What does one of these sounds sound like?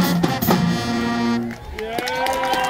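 A marching band plays brass horns loudly outdoors.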